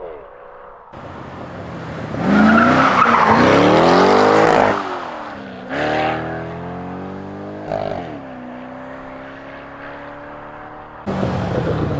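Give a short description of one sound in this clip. A sports car engine revs and roars as the car drives past close by.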